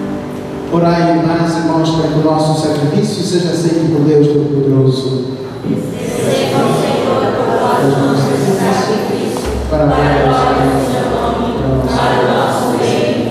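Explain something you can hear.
A man chants through a microphone in an echoing hall.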